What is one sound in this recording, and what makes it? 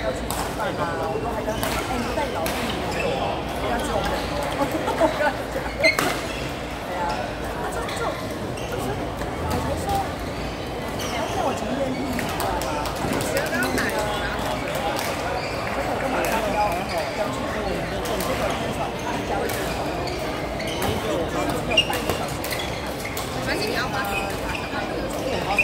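Shuttlecocks are struck with sharp pops of rackets, heard across a large echoing hall.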